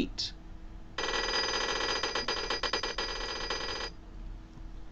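A game's score counter ticks rapidly as points tally up.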